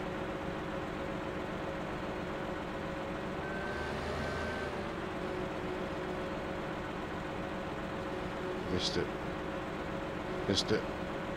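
A machine engine hums steadily.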